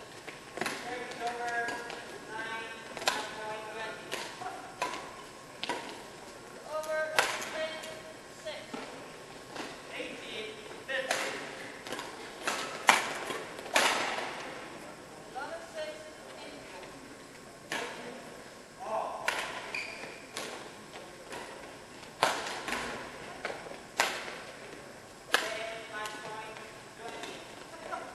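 Court shoes squeak on a sports floor.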